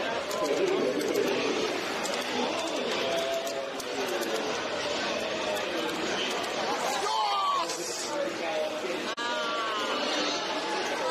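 A crowd chatters and murmurs.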